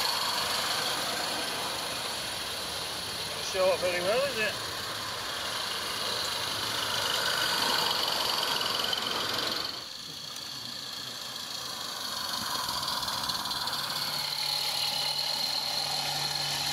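A small steam locomotive puffs and hisses steadily.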